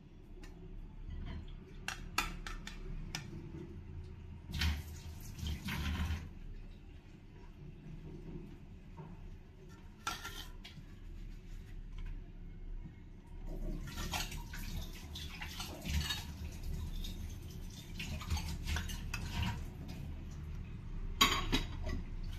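A metal spatula scrapes and taps against a ceramic plate.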